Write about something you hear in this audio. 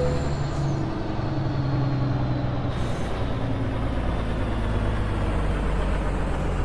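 A truck's diesel engine rumbles steadily as the truck rolls slowly along.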